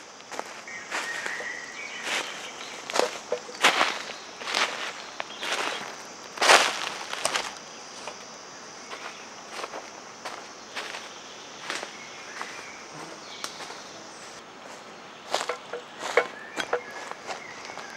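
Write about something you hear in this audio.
Footsteps crunch on dry leaf litter.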